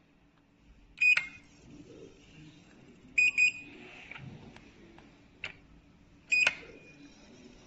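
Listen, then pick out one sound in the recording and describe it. A handheld printer beeps sharply a few times.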